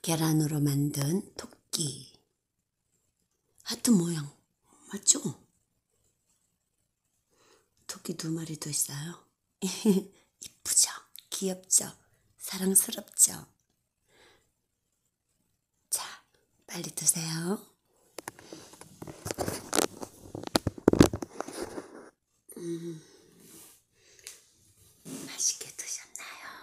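A woman talks calmly and close by, with pauses.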